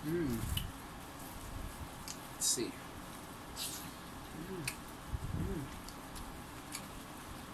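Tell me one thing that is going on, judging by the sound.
A woman chews food noisily.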